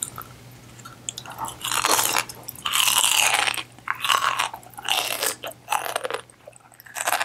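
A young woman crunches a crisp cucumber slice close to a microphone.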